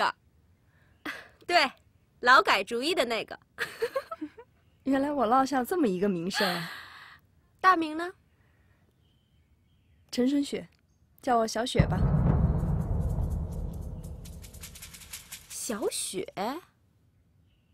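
A woman speaks playfully with a laugh in her voice.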